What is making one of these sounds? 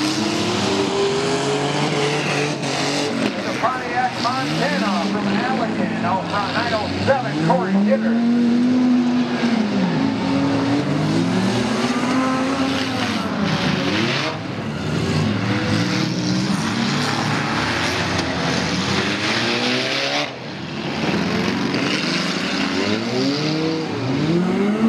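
Car engines roar and rev up and down.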